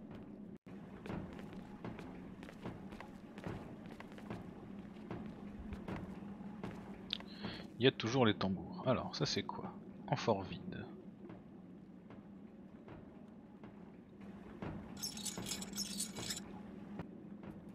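Footsteps crunch on icy snow.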